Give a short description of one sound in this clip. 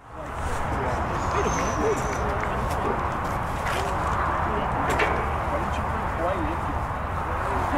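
Young men shout to each other in the distance.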